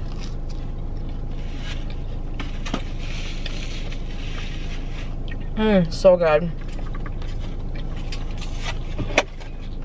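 A young woman chews food.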